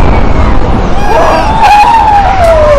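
A crowd of people shouts and cheers nearby.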